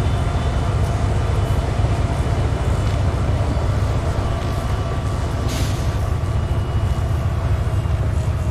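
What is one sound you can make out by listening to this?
A video game SUV's engine idles with a low rumble.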